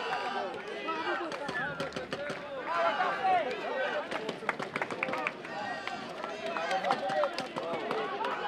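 A crowd of spectators chatters and calls out across an open-air stadium.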